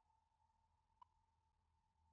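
A game menu blips once as the selection moves.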